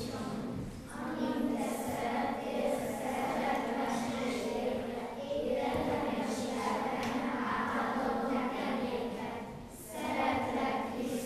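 A group of children sing together in a reverberant hall.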